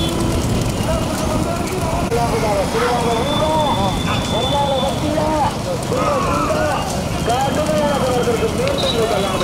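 Hooves clatter on a paved road as bulls gallop.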